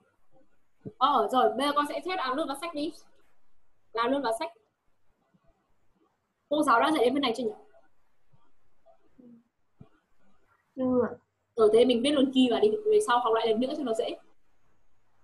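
A young woman speaks clearly through a microphone, as on an online call.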